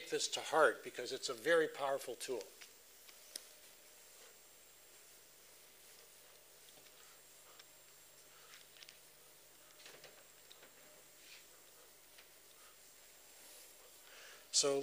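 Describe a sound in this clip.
A felt eraser softly wipes across a chalkboard.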